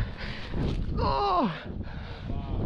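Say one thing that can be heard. A man shouts sharply close to the microphone.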